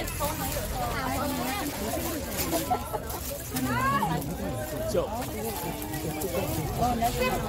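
Several young women talk over each other with animation, close by.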